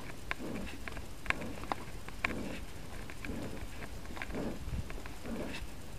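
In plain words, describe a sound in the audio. Bicycle tyres crunch and roll over a bumpy dirt trail.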